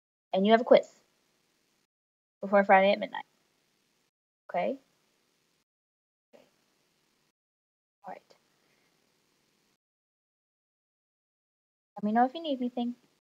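A young woman speaks calmly in short phrases into a close microphone, with pauses between.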